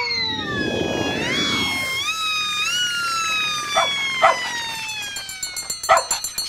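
A fire engine siren wails, its pitch sliding up and down.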